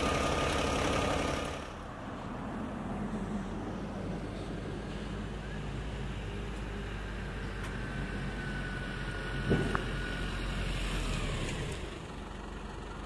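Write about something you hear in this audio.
An ambulance engine idles nearby.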